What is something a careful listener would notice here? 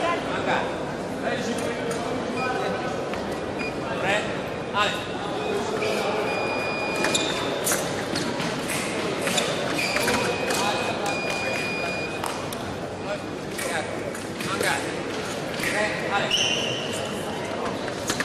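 Voices murmur all around in a large echoing hall.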